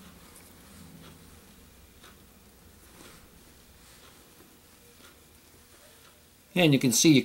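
Fingers softly rustle and tug at fine thread close by.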